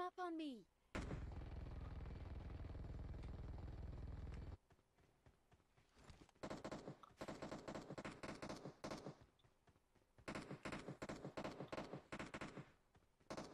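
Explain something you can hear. A motorbike engine roars and revs.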